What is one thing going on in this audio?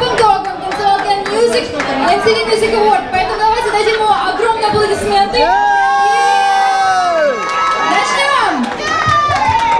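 A young woman sings into a microphone through loudspeakers in a large echoing hall.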